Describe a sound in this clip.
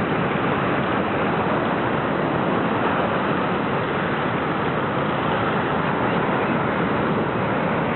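Waves crash and surge against rocks, loud and close.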